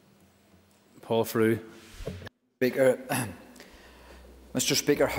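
A man speaks calmly into a microphone in a large chamber.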